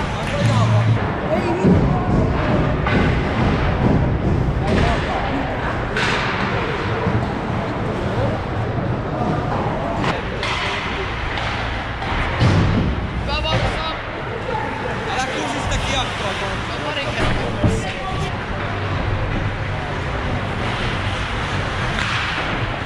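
Hockey sticks clack against the puck and ice.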